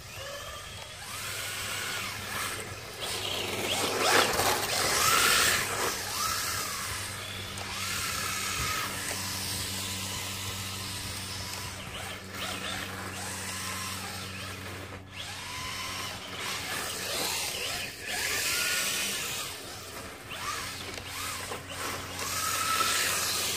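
Small tyres hiss and rumble on concrete.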